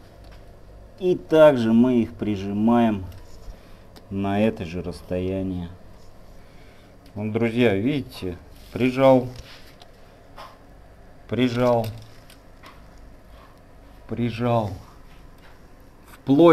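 A young man speaks calmly and close by, in short phrases.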